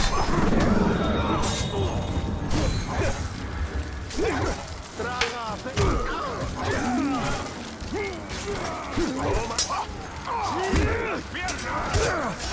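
Blades clash and strike in a fast melee fight.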